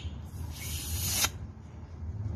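A woman blows air into a balloon.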